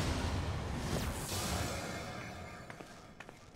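A magical energy blast crackles and roars loudly, then fades.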